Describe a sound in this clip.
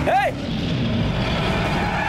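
A lion roars loudly.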